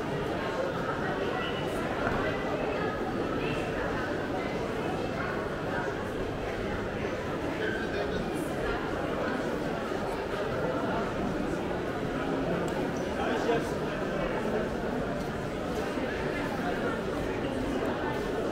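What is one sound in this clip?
Footsteps shuffle and tap on a stone floor.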